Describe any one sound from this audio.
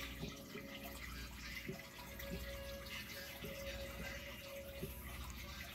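An aquarium filter hums steadily.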